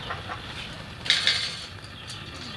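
A metal grill clanks down onto bricks.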